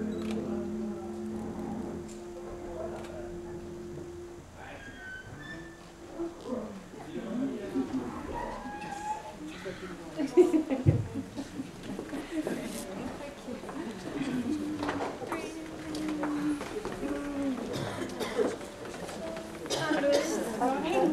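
A crowd of men and women chatters and laughs.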